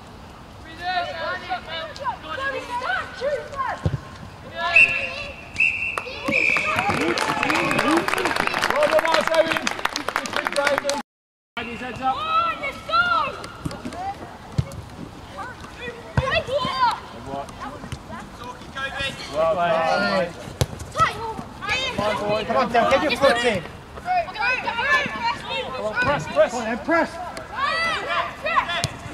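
Young men shout and call out to each other across an open outdoor pitch.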